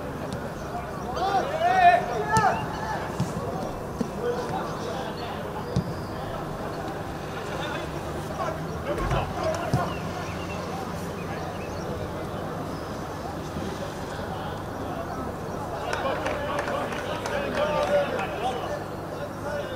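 Players shout to each other across an open pitch.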